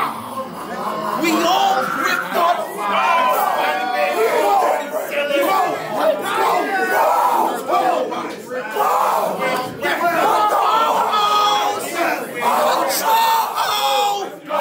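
A young man raps forcefully and rhythmically up close.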